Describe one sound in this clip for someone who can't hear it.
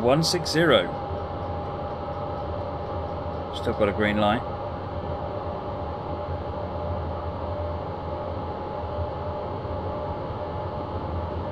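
A train rumbles steadily along the tracks with a low hum.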